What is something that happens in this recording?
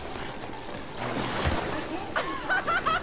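Water splashes underfoot.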